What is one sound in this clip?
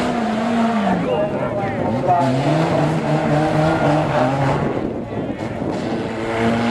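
Banger racing car engines rev and idle.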